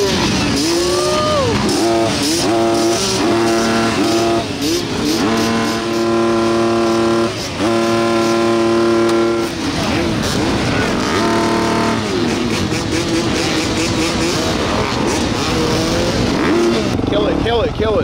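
Dirt bike engines rev loudly nearby, rising and falling.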